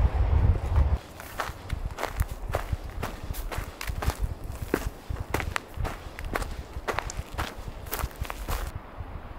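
Footsteps crunch on dry grass and twigs.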